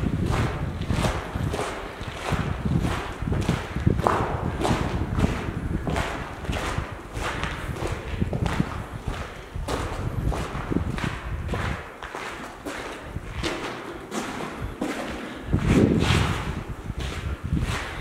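Footsteps crunch on gravel, echoing in a tunnel.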